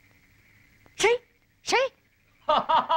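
A young boy calls out loudly twice.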